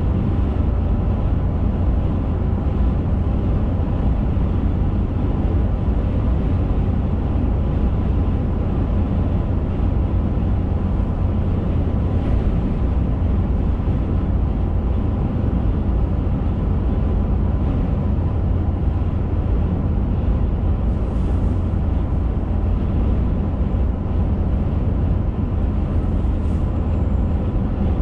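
A car engine drones steadily from inside the car.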